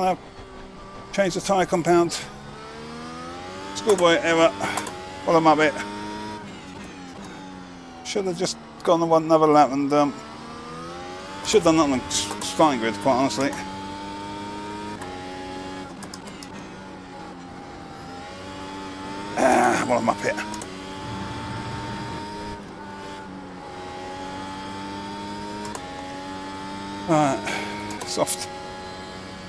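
A racing car engine whines steadily and shifts pitch as it changes gear.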